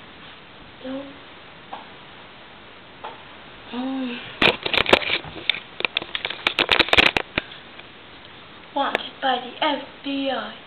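A young girl speaks close by in short, lively bursts.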